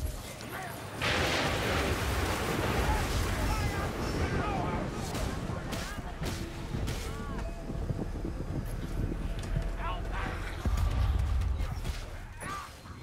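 Magical blasts whoosh and crackle in bursts.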